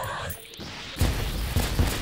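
Sword swings and hits ring out in an electronic game, in quick bursts.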